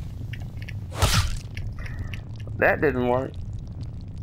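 A giant spider's leg strikes the ground with a sharp thud.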